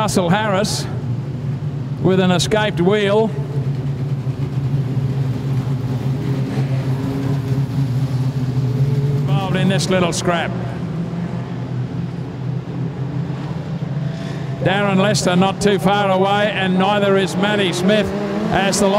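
Race car engines roar steadily as cars speed around a dirt track.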